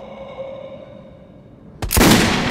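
A creature groans and growls.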